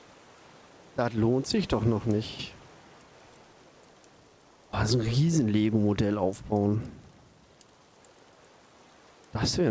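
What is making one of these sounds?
A man speaks close to a microphone, with animation.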